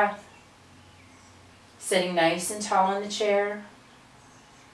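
An older woman speaks calmly and clearly, close by.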